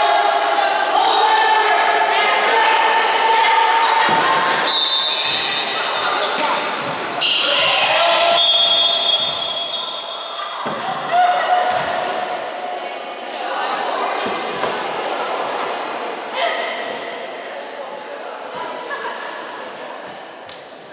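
Players and spectators shout and cheer, echoing in a large gym hall.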